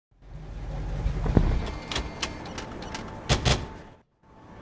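A car door opens and shuts with a clunk.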